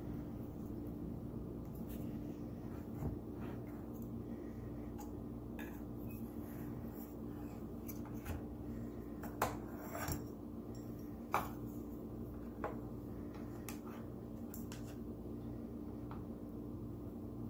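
A knife scrapes and taps against a metal baking pan.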